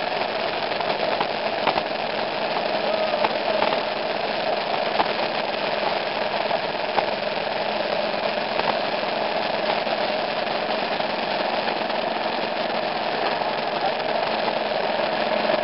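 Rain patters steadily, with droplets hitting close by.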